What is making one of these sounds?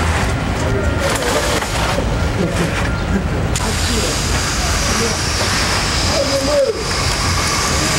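Adult men talk at a distance.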